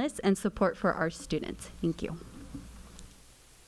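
A young woman speaks into a microphone in a calm voice.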